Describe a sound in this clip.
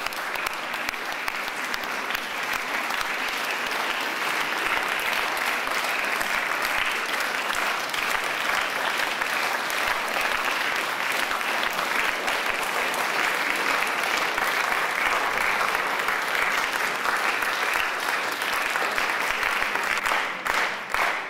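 A crowd applauds loudly in a large echoing hall.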